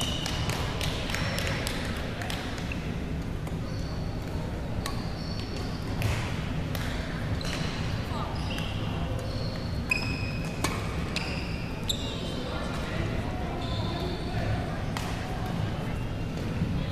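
A large hall echoes with a steady murmur of many people.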